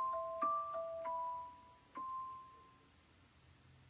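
A few electronic keyboard notes ring out and fade.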